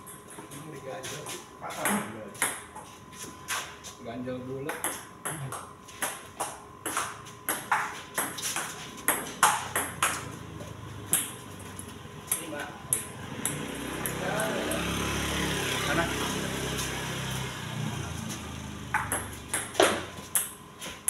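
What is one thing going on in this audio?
A table tennis ball clicks back and forth between paddles and the table.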